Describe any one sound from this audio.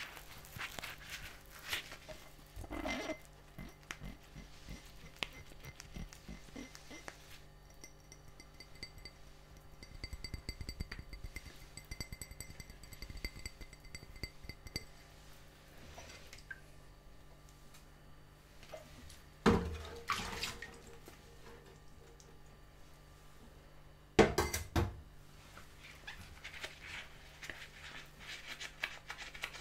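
Water sloshes and splashes in a sink.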